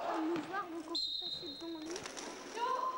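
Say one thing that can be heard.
A referee's whistle blows a short steady blast.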